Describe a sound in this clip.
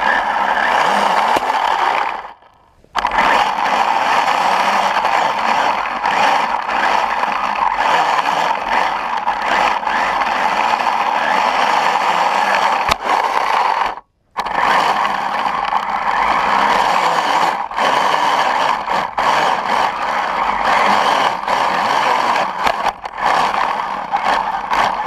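A small snowmobile engine whines loudly and steadily close by.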